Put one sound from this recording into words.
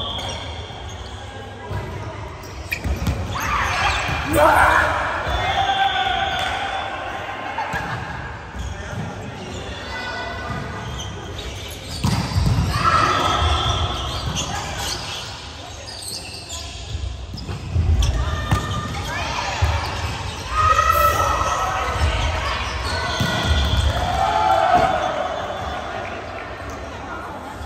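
A volleyball thumps off players' arms and hands.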